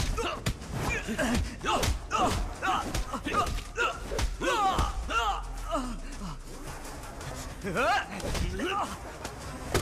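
Punches and blows thud in quick bursts.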